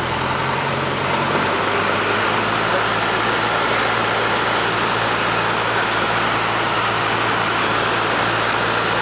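Wind rushes past the plane's cabin.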